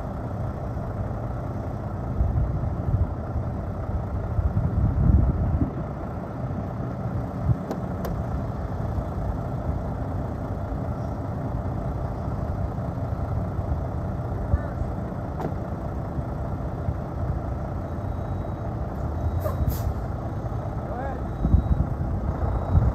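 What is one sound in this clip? A truck's engine idles with a steady low rumble.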